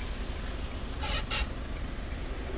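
A car's boot floor cover is lifted with a brief rustle.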